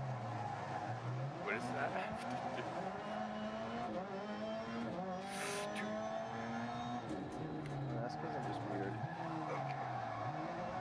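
A racing car engine revs high and shifts through the gears.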